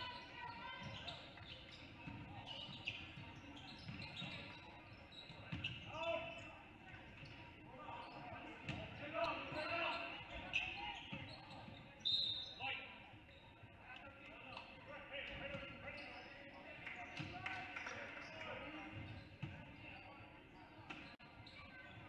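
Players and spectators call out and chatter around the gym.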